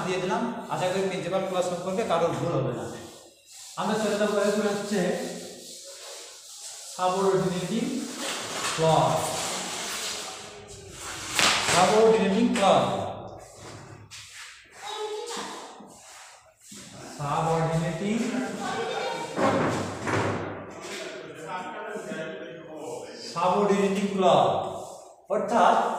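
A young man lectures clearly and with animation.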